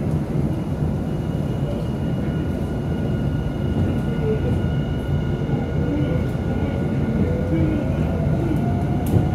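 A train's electric motor whines, rising in pitch as the train speeds up.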